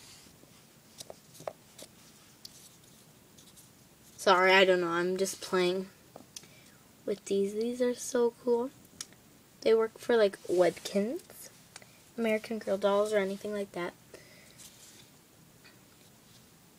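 Foam dice knock softly as they are stacked on one another.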